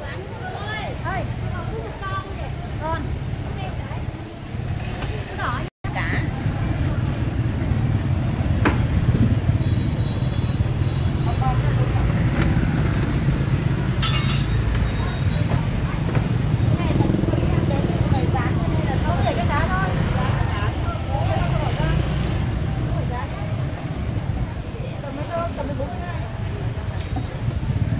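Men and women chatter nearby in a busy outdoor street.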